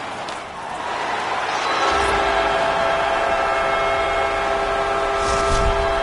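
A large crowd roars in celebration.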